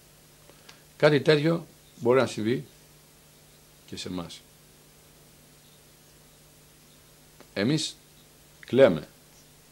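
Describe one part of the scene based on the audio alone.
A middle-aged man speaks slowly and calmly into a close microphone, with long pauses.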